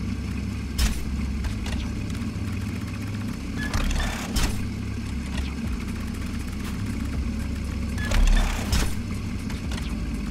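A sports car engine idles with a low, steady rumble.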